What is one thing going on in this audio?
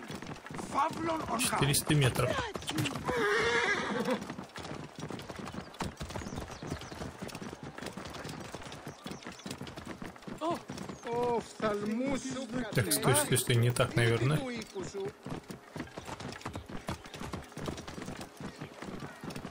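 Horse hooves clop quickly on stone paving.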